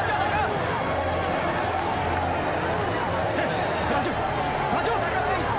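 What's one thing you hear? A crowd of young men shouts and cheers excitedly.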